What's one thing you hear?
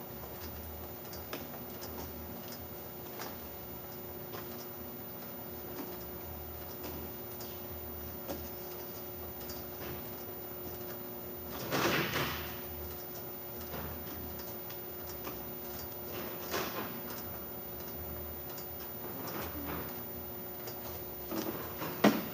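A labelling machine clicks and clacks at intervals.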